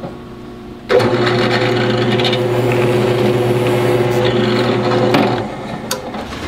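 A drill press whirs as it bores through a rubber mat.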